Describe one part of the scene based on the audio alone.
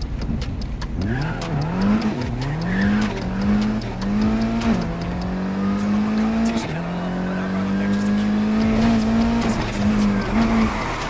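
A sports car engine revs high, rising and falling as it shifts gears.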